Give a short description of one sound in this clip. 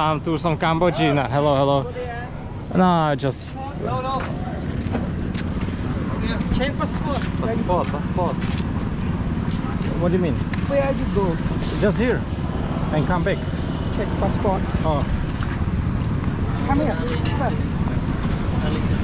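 A man speaks close to the microphone in a casual, chatty way.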